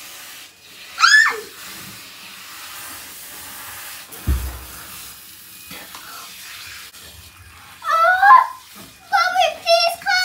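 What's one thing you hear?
A young girl squeals and talks excitedly close by.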